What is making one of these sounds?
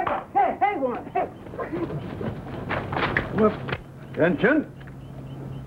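A man calls out loudly to a dog.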